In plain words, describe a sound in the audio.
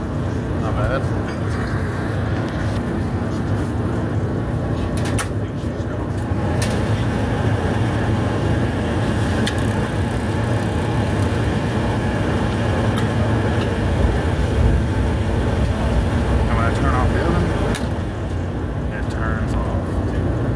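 A furnace blower roars low and steady.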